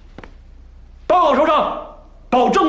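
A young man speaks up loudly in a room.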